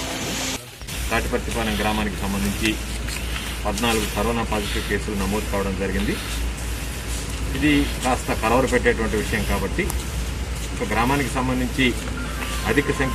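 A man speaks calmly into a microphone outdoors.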